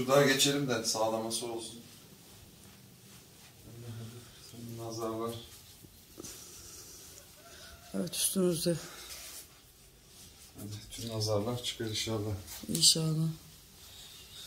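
A middle-aged man talks casually nearby, in short bursts.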